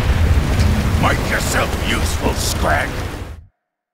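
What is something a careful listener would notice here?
A man shouts gruffly, close by.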